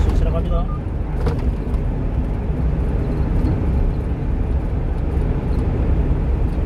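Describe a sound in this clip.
A car's engine hums low and steady inside the car.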